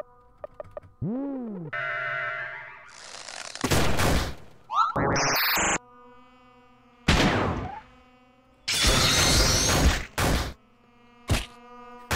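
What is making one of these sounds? Loud game attack effects crash and hit.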